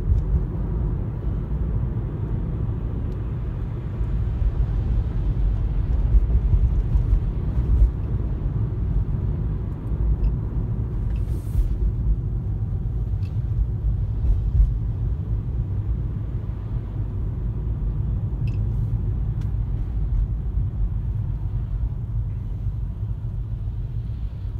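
Tyres rumble low and steady on the road.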